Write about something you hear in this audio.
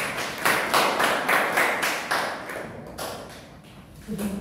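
A group of students applaud, clapping their hands.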